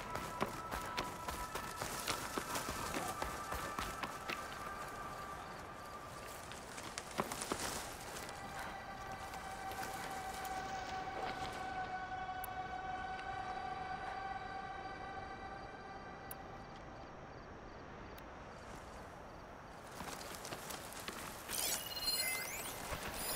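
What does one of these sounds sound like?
Footsteps crunch through dry grass and dirt.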